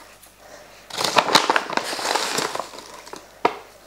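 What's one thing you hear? Powder pours and rustles into water.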